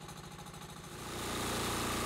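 A sawmill engine suddenly revs up loudly.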